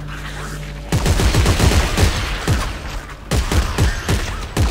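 A weapon fires in loud, rapid bursts.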